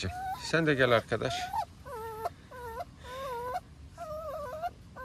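Puppies whine and yelp close by, in high, squeaky cries.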